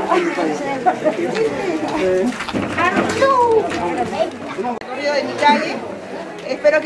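A brass band plays a lively tune outdoors.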